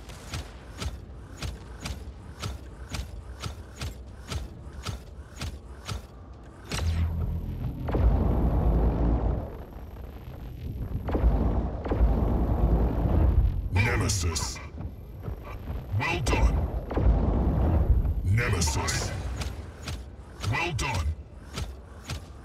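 Heavy robot footsteps thud steadily.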